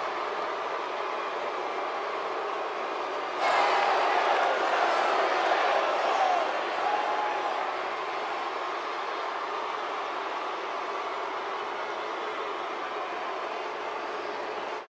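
A large crowd cheers and roars throughout, swelling loudly for a few seconds.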